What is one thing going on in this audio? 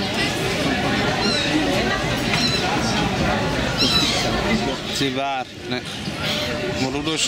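A crowd of people chatters across the water.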